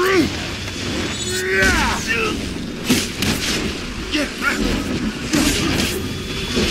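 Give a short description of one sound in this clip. Weapons strike and thud in quick blows.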